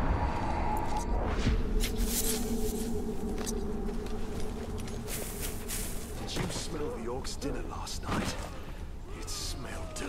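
Footsteps crunch on dry ground and leaves.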